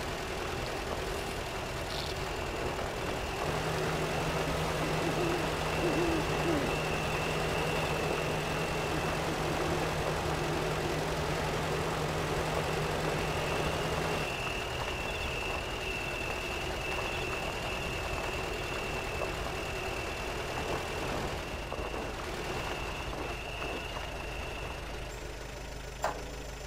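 An off-road truck engine drones steadily as the truck crawls over rough ground.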